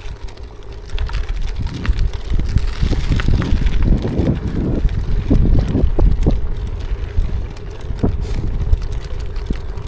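Bicycle tyres rattle and rumble over cobblestones.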